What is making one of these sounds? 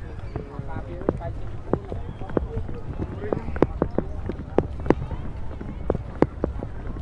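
Footsteps and sandals slap on pavement.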